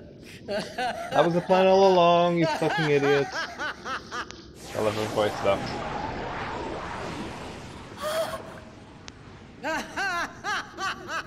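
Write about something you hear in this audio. A woman cackles loudly with wicked glee.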